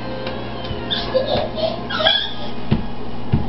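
A toddler squeals and babbles playfully.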